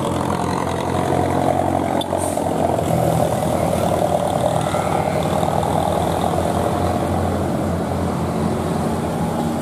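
A heavy truck engine rumbles and labours close by.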